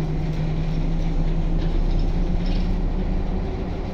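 Footsteps walk along a bus aisle.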